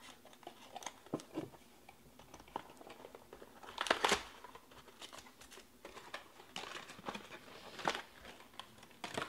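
Cardboard packaging scrapes and rustles as it is opened by hand.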